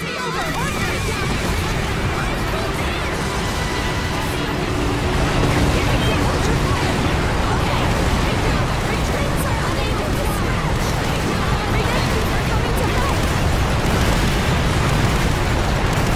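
Laser beams zap past.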